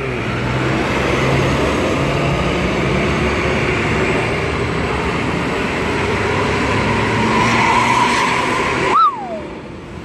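A diesel coach engine rumbles as the bus pulls away.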